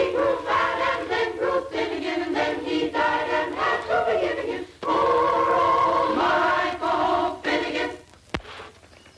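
A group of boys sings together.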